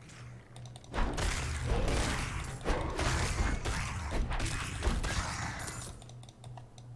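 Game combat sounds crash and clash loudly.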